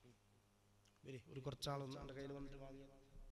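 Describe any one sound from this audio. A man speaks loudly into a microphone, heard through a loudspeaker.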